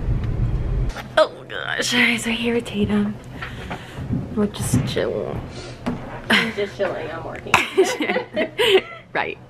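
A young woman talks and laughs cheerfully close by.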